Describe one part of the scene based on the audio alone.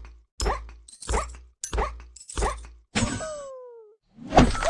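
Cartoon jumps land with short, springy boings, one after another.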